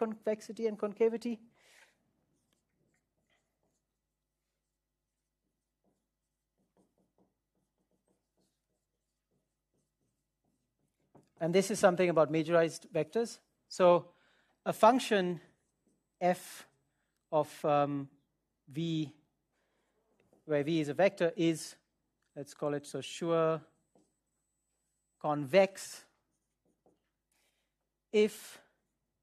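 A man speaks calmly, lecturing, with long pauses.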